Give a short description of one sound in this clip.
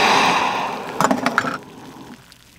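A metal pot clinks as it is lifted off a stove.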